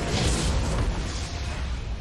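A loud explosion booms and crashes.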